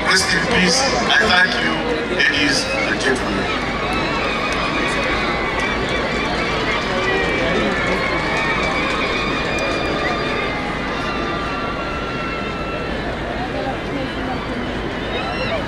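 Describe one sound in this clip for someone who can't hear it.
A large crowd murmurs in the background.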